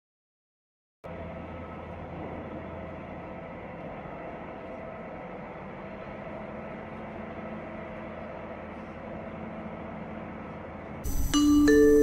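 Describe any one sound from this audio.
A regional train rumbles along the rails, heard from inside a carriage.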